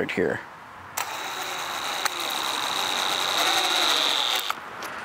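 A power drill whirs steadily as it drives a screw into wood.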